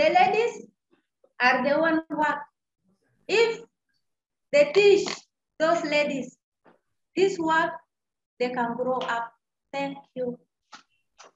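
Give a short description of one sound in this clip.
A young woman speaks with animation and laughs, heard over an online call.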